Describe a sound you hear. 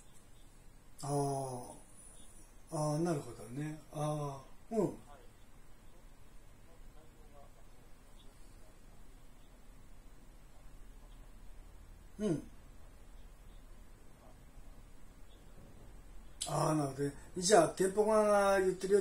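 A middle-aged man speaks close by in short, halting phrases.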